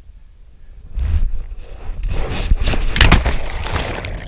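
Water splashes loudly as a person plunges in.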